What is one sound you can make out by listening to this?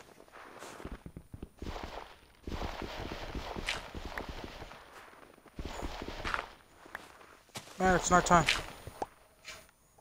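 Blocks crunch and crumble as they are dug out.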